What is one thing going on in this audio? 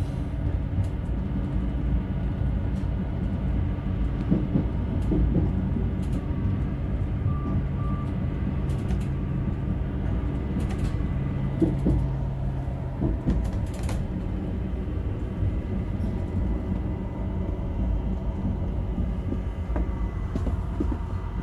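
A windscreen wiper swishes across the glass.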